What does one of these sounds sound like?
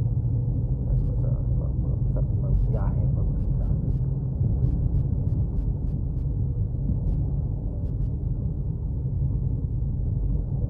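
A car engine hums steadily from inside the cabin while driving.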